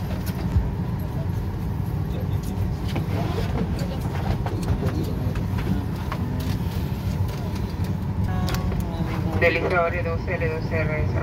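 A steady low engine drone hums throughout.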